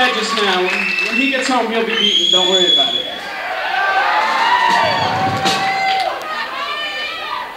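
An electric guitar plays through an amplifier.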